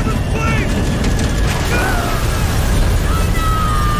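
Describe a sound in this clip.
Metal crashes and tears apart.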